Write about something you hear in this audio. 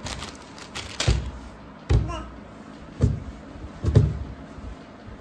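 A toddler pats her hands on a wooden surface with dull thumps.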